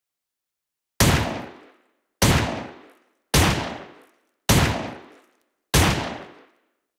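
A pistol fires five loud shots one after another, each echoing in a hard room.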